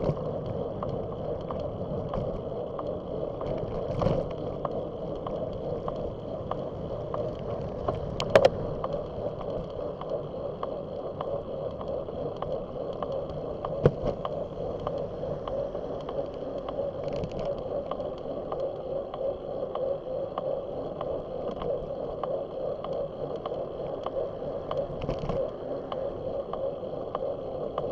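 Wind rushes steadily past the microphone.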